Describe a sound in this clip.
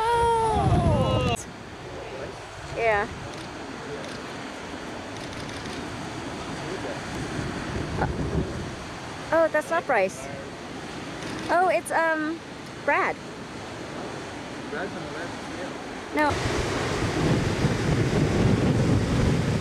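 Waves crash and roar against the shore.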